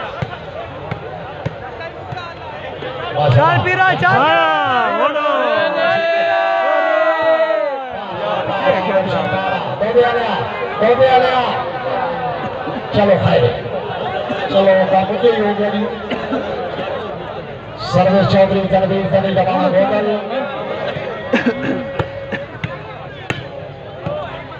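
A crowd of men chatters and cheers outdoors.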